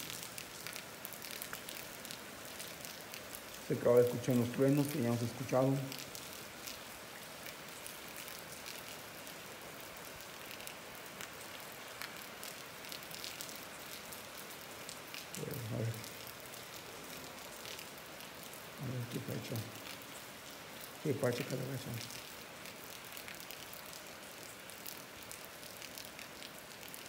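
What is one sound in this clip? Rain patters steadily on wet pavement outdoors.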